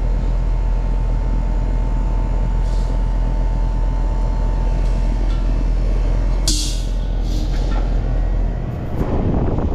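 An air conditioning unit hums steadily close by.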